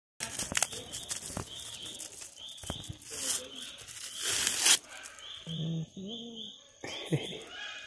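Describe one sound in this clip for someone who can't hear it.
A plastic bag crinkles as it is peeled open by hand.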